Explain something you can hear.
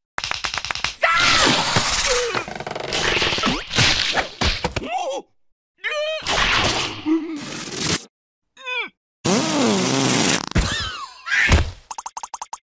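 A cartoon creature screams in panic.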